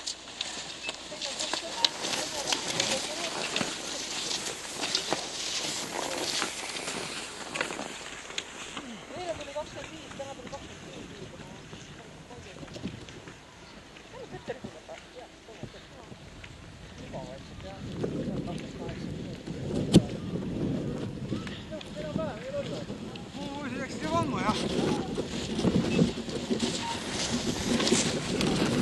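Ski poles click and crunch into the snow.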